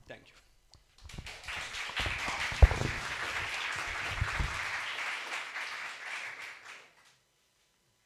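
An audience claps steadily, then the clapping fades.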